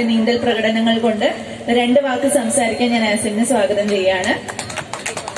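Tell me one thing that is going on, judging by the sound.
A young woman speaks into a microphone over a loudspeaker.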